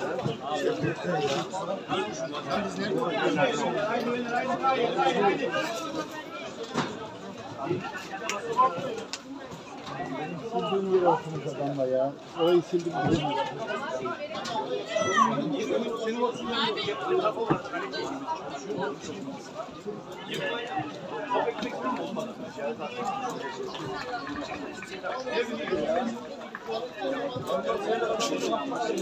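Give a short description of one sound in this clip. Men talk and call out close by, outdoors.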